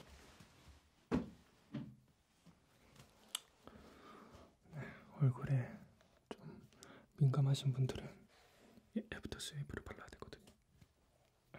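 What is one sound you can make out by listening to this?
A young man whispers softly close to a microphone.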